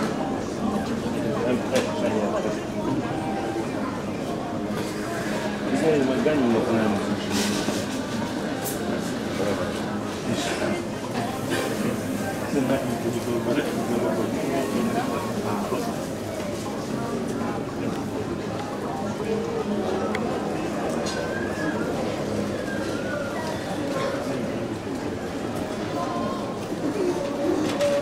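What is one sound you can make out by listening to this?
A large crowd murmurs and chatters steadily in an open stadium.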